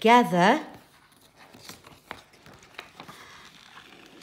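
A page of a book turns with a papery rustle.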